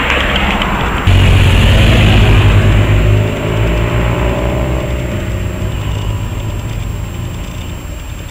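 A motorcycle rumbles past and fades away.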